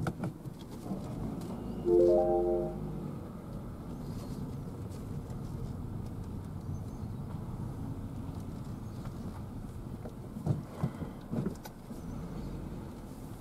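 A car engine hums low and steady from inside the car as it drives slowly.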